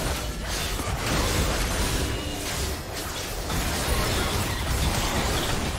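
Magic spells crackle and burst in a hectic fight.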